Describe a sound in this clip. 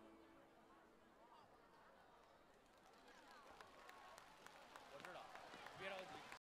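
An audience cheers and whistles in a large hall.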